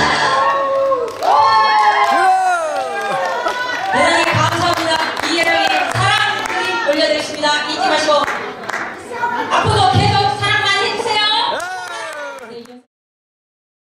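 A woman sings through a microphone in a large hall.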